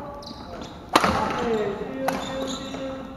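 A badminton racket strikes a shuttlecock with a sharp pop.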